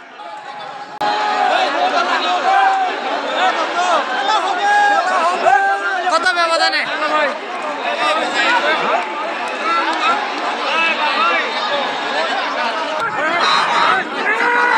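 A large crowd of men chatters and calls out outdoors.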